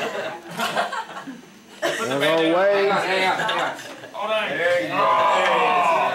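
Young people laugh together.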